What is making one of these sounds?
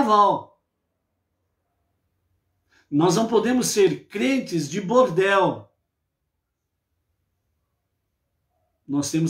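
An elderly man speaks calmly and close up, in short bursts with pauses.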